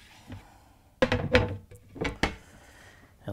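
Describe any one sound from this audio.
A hard panel clatters and knocks against a countertop.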